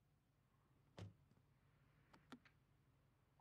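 A car door clicks open and thumps shut.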